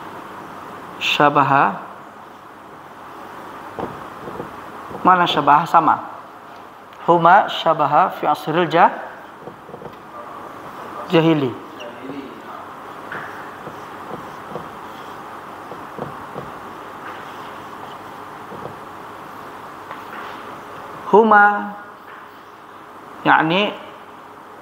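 A man speaks in short, clear bursts nearby.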